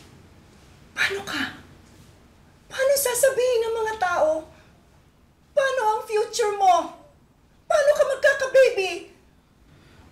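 A middle-aged woman pleads tearfully, close by.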